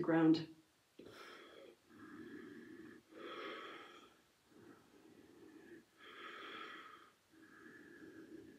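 A woman breathes out audibly in rhythm.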